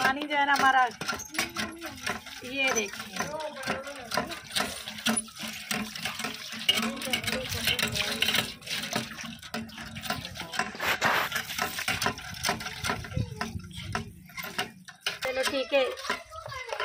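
Metal dishes clink and clatter.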